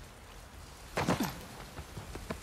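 A person lands heavily with a thud after a drop.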